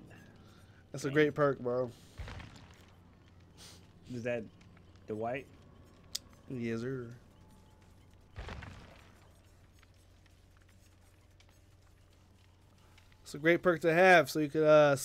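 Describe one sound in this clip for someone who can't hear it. A young man talks casually into a close microphone, in short bursts.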